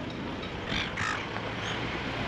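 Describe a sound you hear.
Seagulls call nearby.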